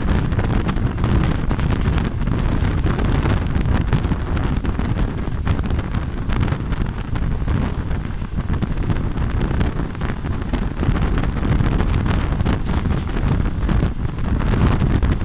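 A train rumbles and clatters steadily along the tracks.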